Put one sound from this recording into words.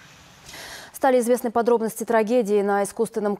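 A woman speaks calmly and clearly into a microphone, reading out news.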